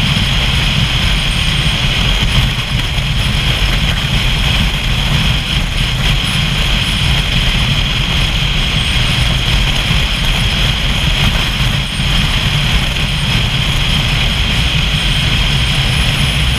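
A motorcycle engine drones steadily at cruising speed.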